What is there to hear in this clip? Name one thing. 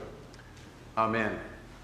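A man begins to speak loudly through a microphone in a large echoing room.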